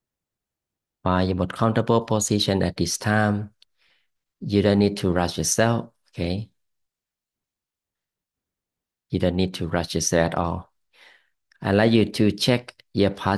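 A middle-aged man speaks calmly into a close microphone, heard as if over an online call.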